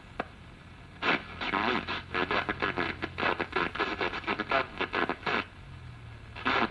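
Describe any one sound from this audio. An old radio plays a broadcast through its small speaker.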